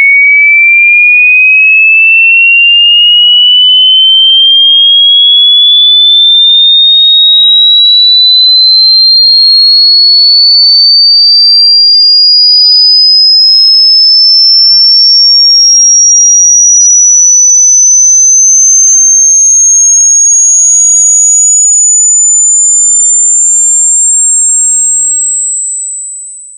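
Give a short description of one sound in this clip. A pure electronic tone rises slowly and steadily in pitch.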